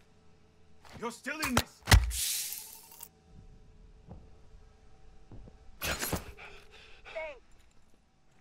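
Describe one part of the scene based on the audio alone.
A bright chime rings as an item is picked up.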